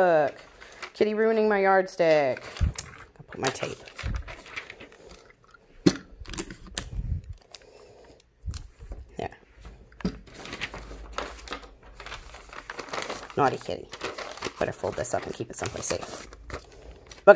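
Paper rustles and crinkles as sheets are handled and shuffled.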